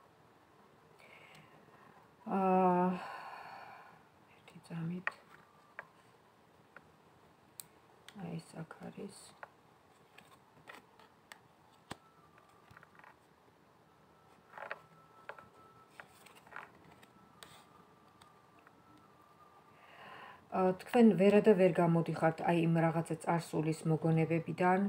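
Playing cards shuffle and tap softly.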